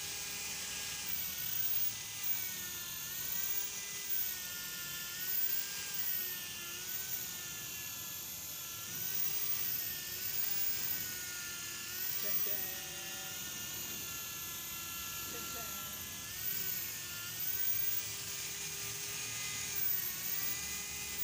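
An electric polisher whirs steadily, rising and falling in pitch as it buffs a car's paint.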